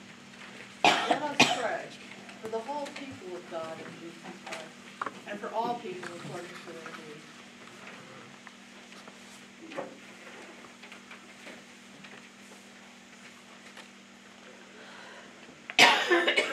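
An elderly woman reads aloud in a calm voice.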